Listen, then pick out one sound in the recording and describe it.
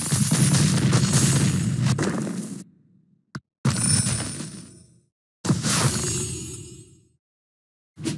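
Game blocks burst with bright crashing effects.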